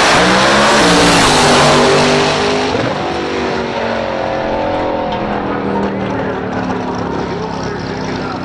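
A drag racing car thunders past close by and its roar fades into the distance.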